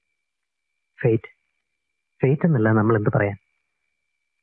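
A second man answers in a low voice.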